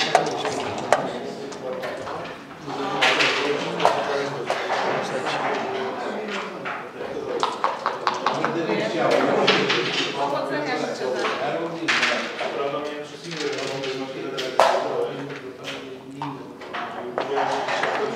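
Game pieces click against a wooden board.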